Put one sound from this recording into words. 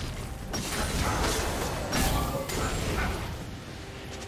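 Game spell effects whoosh and crash in a fast fight.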